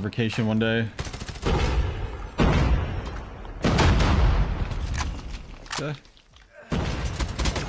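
Rapid gunfire bursts loudly from a game.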